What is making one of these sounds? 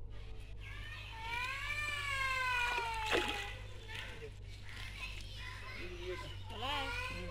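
Water splashes and sloshes as a net is dragged through a pond.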